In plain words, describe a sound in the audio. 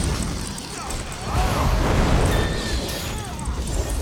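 A blade swooshes through the air.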